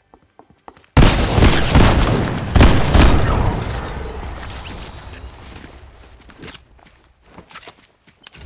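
Gunshots ring out in quick, loud bursts.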